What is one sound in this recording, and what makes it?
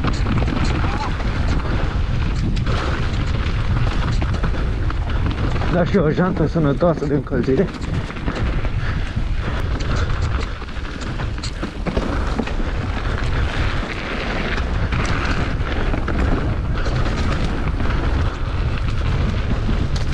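Wind buffets the microphone in a steady low rumble.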